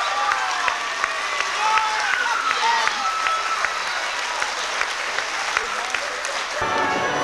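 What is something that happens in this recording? An audience cheers and whistles loudly.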